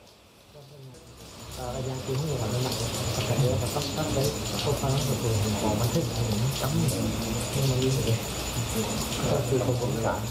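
A man talks over a busy background murmur.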